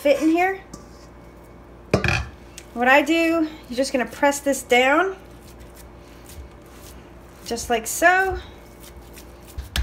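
Hands squish and press soft ground meat.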